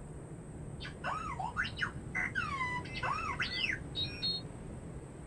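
Birds call in the sky.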